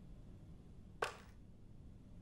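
A wooden drawer slides open.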